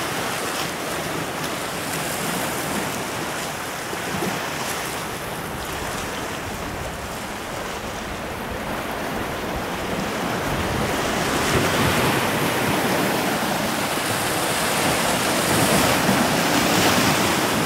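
Waves wash and break against rocks, growing louder.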